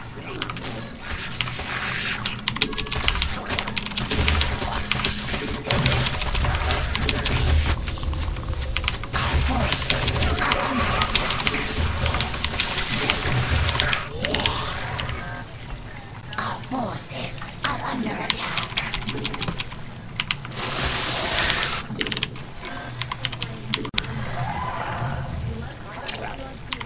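Game battle sounds of rapid clicks, bursts and creature screeches play throughout.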